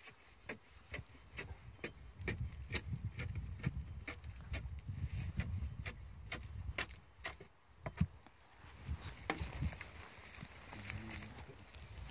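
Cord rubs and creaks as it is laced through a boot.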